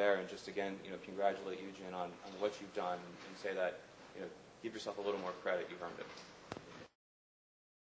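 A man speaks calmly into a handheld microphone.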